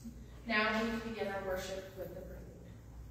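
A woman sings a sustained note in a large echoing hall.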